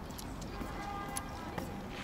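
A man's footsteps tap on paving stones.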